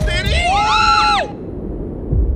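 A woman screams in excitement, close to a microphone.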